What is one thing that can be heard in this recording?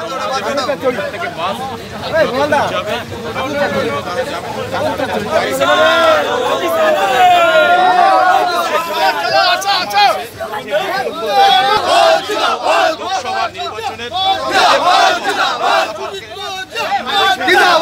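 A crowd of men shouts and argues loudly outdoors.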